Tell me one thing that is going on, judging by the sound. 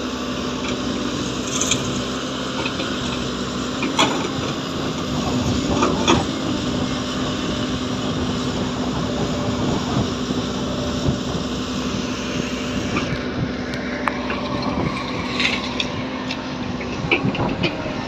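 Sand pours from a bucket into a dump truck's metal bed.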